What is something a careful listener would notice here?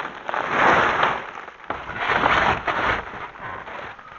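Plastic wrap crinkles and rustles close by.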